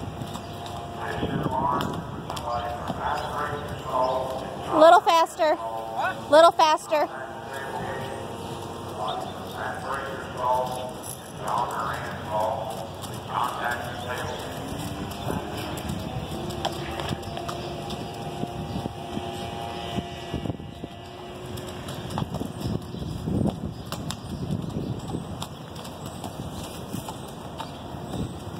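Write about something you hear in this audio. A horse's hooves thud softly on dirt.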